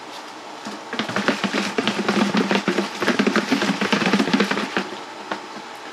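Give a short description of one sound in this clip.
A plastic container full of liquid is shaken hard, sloshing and rattling.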